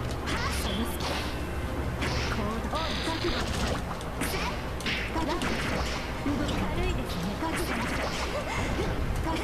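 Fighting game hits crash and whoosh in quick bursts.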